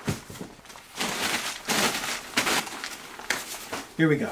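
Packing paper rustles and crinkles loudly.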